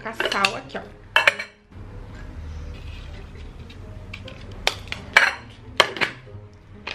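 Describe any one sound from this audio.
A metal lid clinks against a jar.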